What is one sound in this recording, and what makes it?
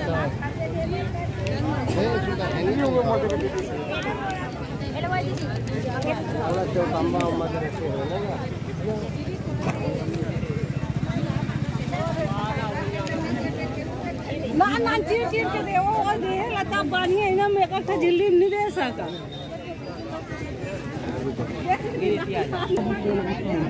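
A crowd of women and men chatter nearby.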